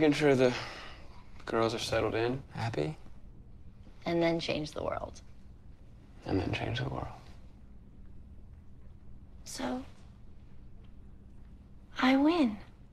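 A woman speaks softly and warmly, close by.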